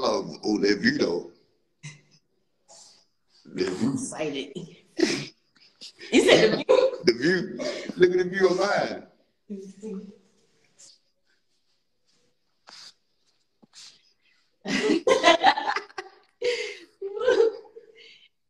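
A young man talks and laughs with animation.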